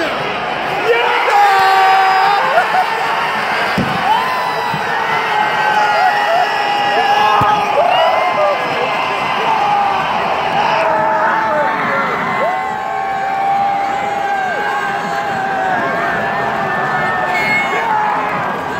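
Fans nearby shout and whoop with excitement.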